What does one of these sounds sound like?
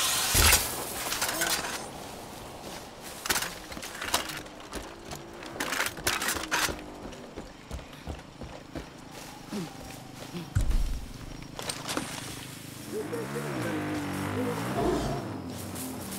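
A small vehicle engine hums and revs while driving.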